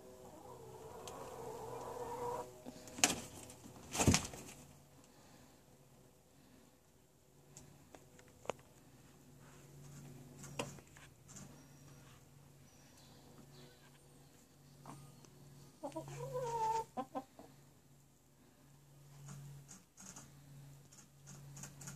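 Straw rustles and crackles as a hen shifts in its nest.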